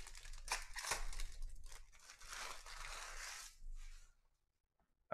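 A foil wrapper crinkles and tears as it is ripped open.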